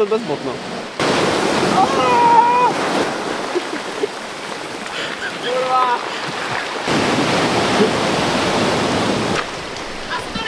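Waves wash and hiss over a pebble beach.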